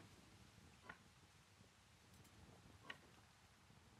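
A soft interface click sounds a few times.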